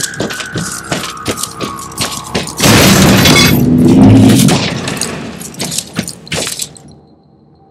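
Heavy armored footsteps clank steadily on a metal floor.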